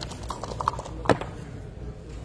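Dice clatter onto a table.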